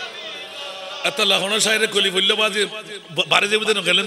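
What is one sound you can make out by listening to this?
A man preaches loudly and with fervour through a microphone and loudspeakers.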